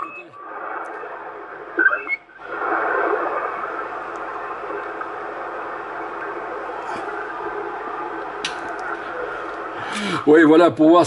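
A radio receiver hisses with steady static.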